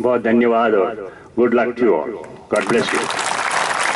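An elderly man speaks with animation through a microphone over loudspeakers.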